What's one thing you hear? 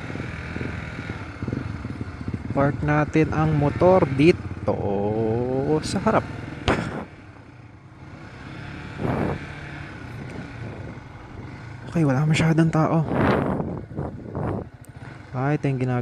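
A motorcycle engine idles and rumbles at low speed.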